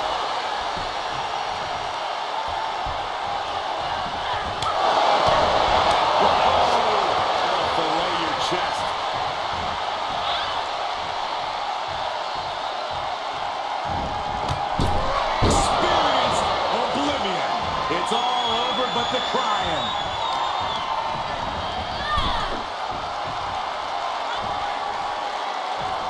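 A large crowd cheers and roars steadily, swelling louder at times.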